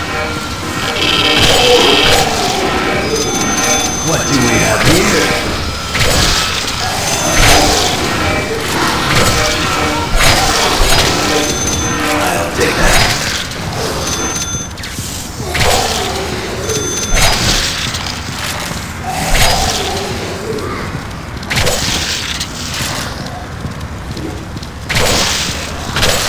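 Blades slash and squelch into flesh again and again.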